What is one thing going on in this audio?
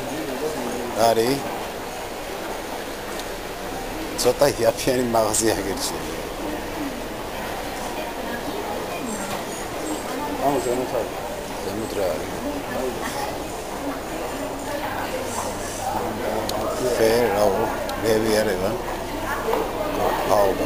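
Voices of a crowd murmur in a large echoing hall.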